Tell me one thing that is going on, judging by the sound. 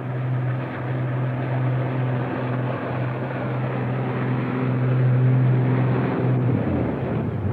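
A motorboat engine hums steadily, then cuts out.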